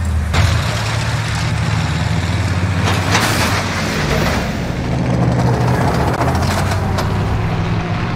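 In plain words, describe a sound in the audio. A heavy engine rumbles steadily.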